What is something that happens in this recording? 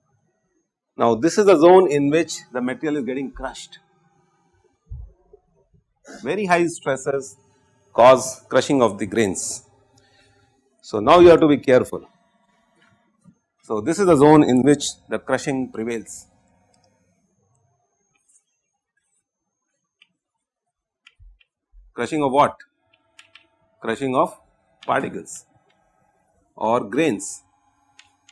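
A middle-aged man lectures calmly through a clip-on microphone, in short phrases with pauses.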